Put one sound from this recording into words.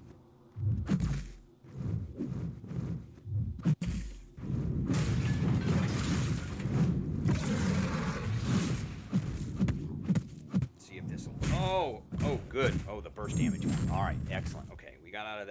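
Heavy punches and blows thud and crash in a game fight.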